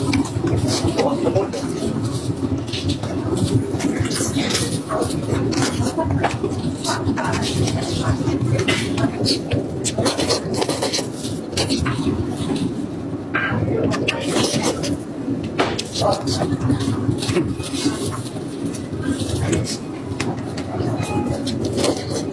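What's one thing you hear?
A man chews meat close to a microphone, with wet, squelching sounds.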